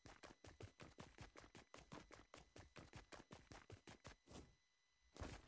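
Footsteps run through grass.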